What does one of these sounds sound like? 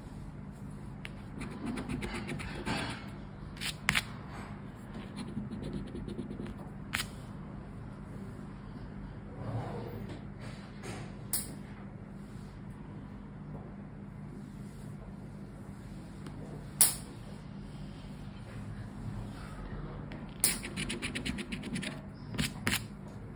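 A plastic scraper scratches quickly across a scratch card.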